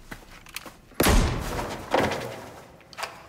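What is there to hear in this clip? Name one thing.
Gunshots ring out in a hard-walled room.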